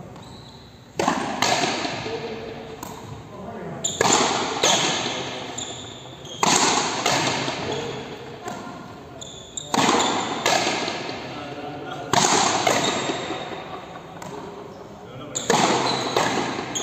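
A frontenis ball smacks against a wall, echoing through a large indoor court.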